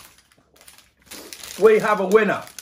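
A paper packet rustles and crinkles.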